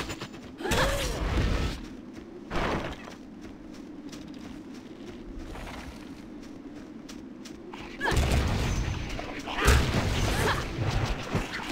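Magic spells whoosh and blast in short bursts.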